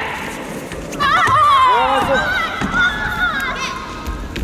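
A second young woman shouts a karate kiai in a large echoing hall.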